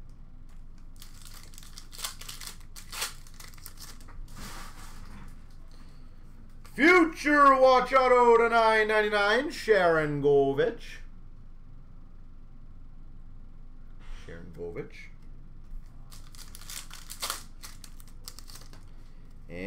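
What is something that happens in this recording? Cardboard packs crinkle and rustle as hands tear them open.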